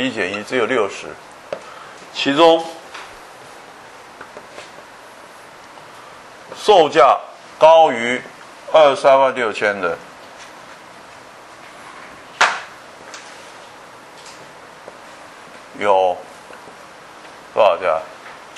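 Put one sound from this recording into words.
An elderly man lectures calmly through a microphone, in short phrases with pauses.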